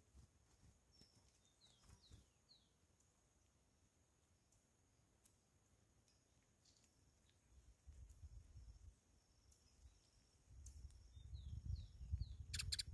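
Small birds chirp in short bursts.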